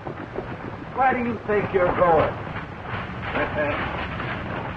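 A man shouts loudly outdoors.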